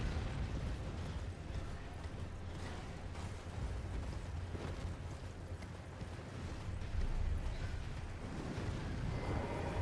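A horse gallops with heavy hoofbeats.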